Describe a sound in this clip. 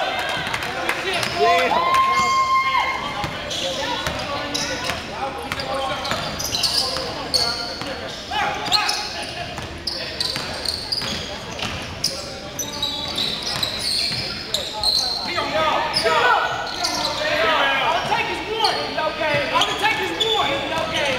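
Sneakers squeak sharply on the wooden floor.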